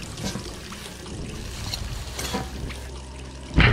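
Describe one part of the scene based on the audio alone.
Gloved hands and boots clank on metal ladder rungs while climbing.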